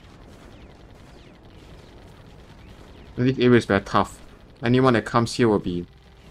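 Gun turrets fire in rapid bursts.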